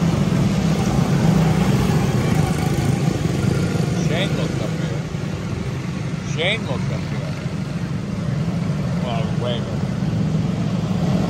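Small kart engines buzz loudly as they race past and fade away.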